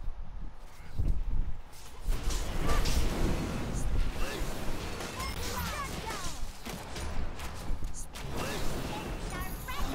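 Blows and impacts thud during a fight.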